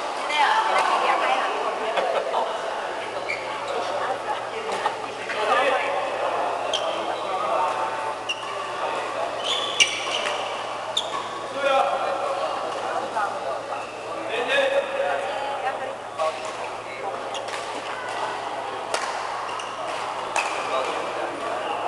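Men talk and call out to one another across the court.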